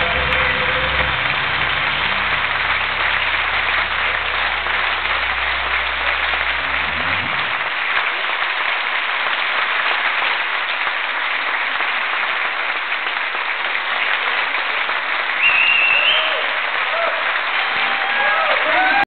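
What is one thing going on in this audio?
A large crowd claps and cheers loudly.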